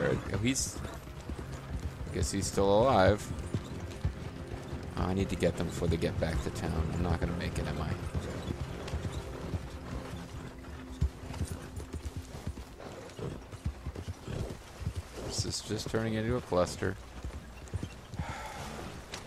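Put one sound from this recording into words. A horse gallops with steady hoofbeats on a dirt road.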